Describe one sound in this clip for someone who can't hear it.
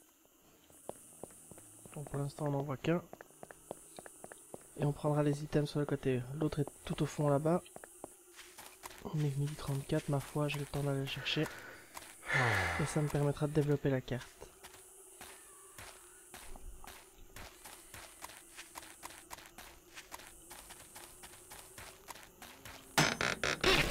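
Footsteps tread steadily over dirt and grass.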